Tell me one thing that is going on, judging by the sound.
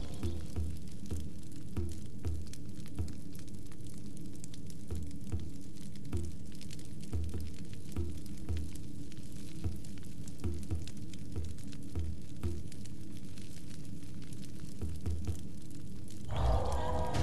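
Soft interface clicks tick as a menu selection moves from item to item.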